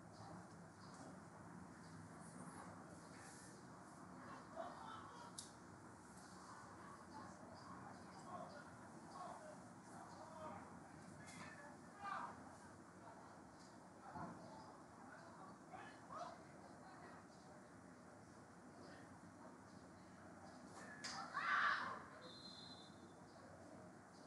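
Young women shout and call out to each other across an open field outdoors.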